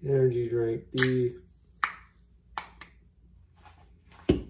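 A drink can cracks and hisses open.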